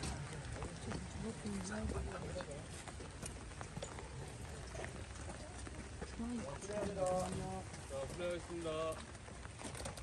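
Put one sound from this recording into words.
Women chat quietly nearby outdoors.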